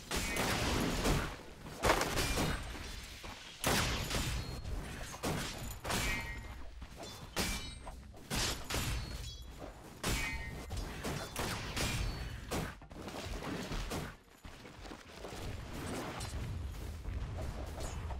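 A man talks into a microphone with animation.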